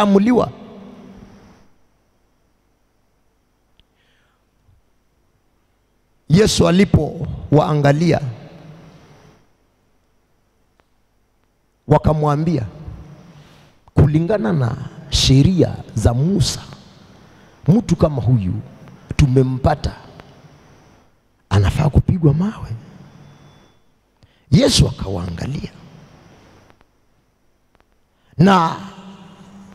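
A man preaches with animation into a microphone, in bursts with pauses, echoing in a hall.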